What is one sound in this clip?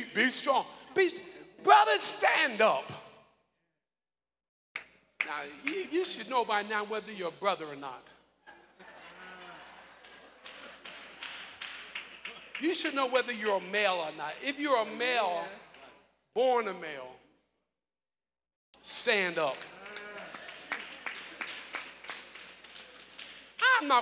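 A man preaches with animation into a microphone in a large echoing hall.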